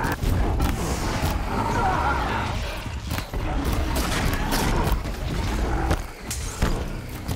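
Arrows whoosh and strike with sharp thuds.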